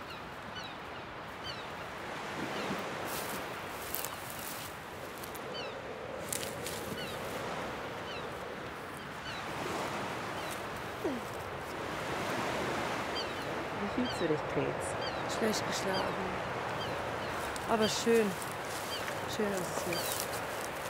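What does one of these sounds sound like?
Wind blows steadily across open ground.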